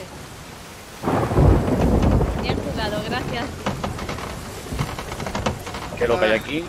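Rough waves crash and surge against a wooden ship.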